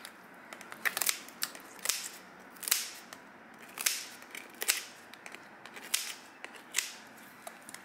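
Scissors snip crisply through a hard shell.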